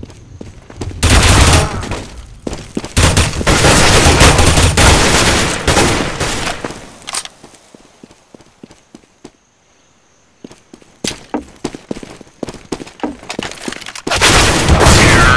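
Automatic rifle fire rattles in loud bursts.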